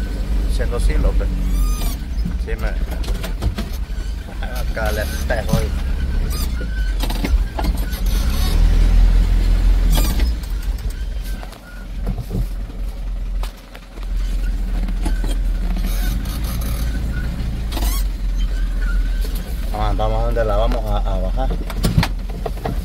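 A vehicle engine rumbles steadily nearby.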